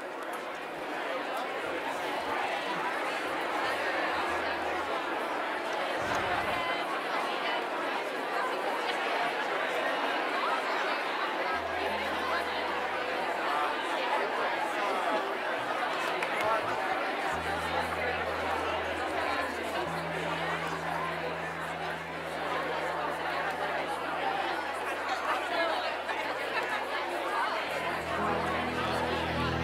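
A large crowd of men and women chatters and greets one another in a big echoing hall.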